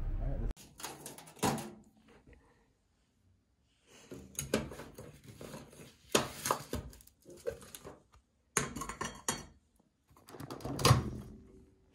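A glass container clatters on a shelf.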